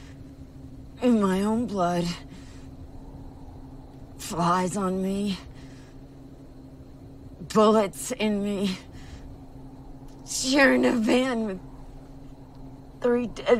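A woman speaks slowly and quietly, close by, in short emotional phrases.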